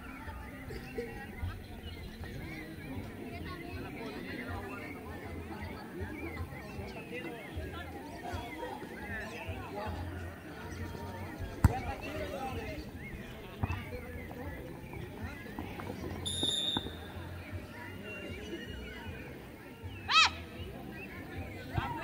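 A crowd of spectators chatters and calls out at a distance outdoors.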